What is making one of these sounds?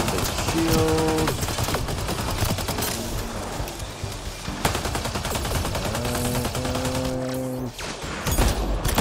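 Guns fire in rapid bursts amid explosions.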